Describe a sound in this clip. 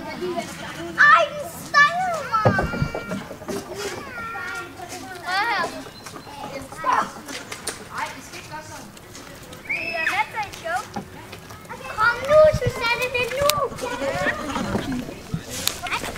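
Goats bleat loudly nearby, with a shaky, wavering cry.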